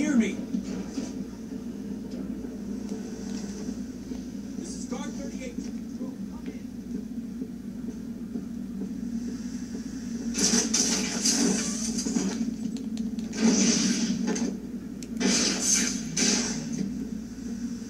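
Video game sound effects and music play from a television.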